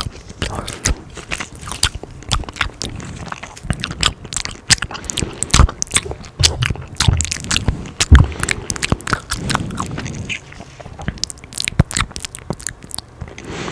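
Mouth clicks and lip smacks sound close to a microphone.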